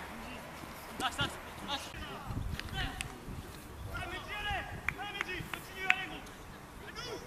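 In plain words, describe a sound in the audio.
Young men shout to each other across an open playing field, some way off.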